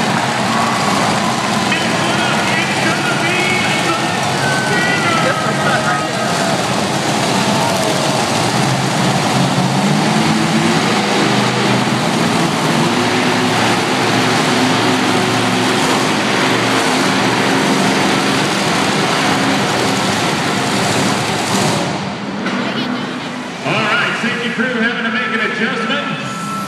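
Monster truck engines roar loudly in a large echoing arena.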